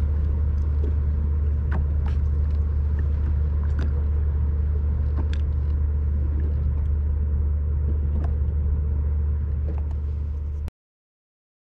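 Small waves lap and splash gently close by.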